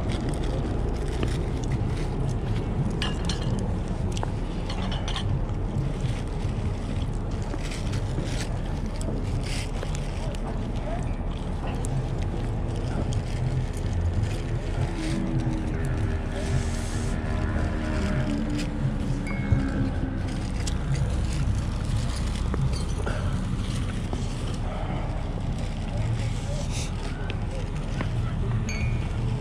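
Hands rustle through a pile of cloth caps.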